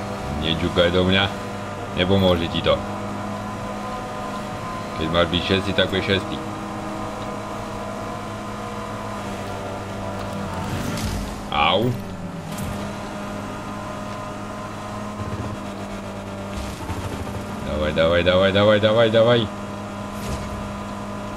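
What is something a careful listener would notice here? A racing game's engine hums steadily.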